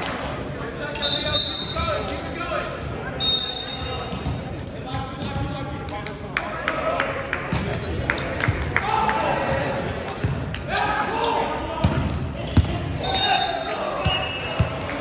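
Shoes squeak sharply on a gym floor, echoing in a large hall.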